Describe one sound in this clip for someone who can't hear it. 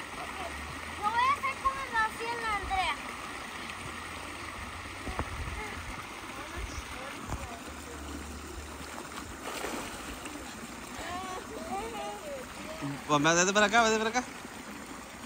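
A young girl talks with excitement close by.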